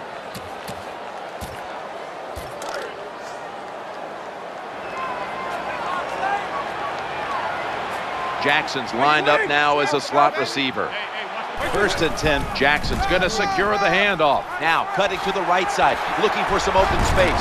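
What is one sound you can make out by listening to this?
A stadium crowd roars steadily, growing louder.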